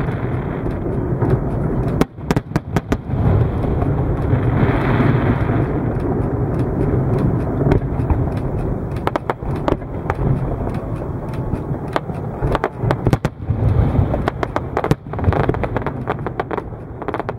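Fireworks boom and crackle loudly outdoors.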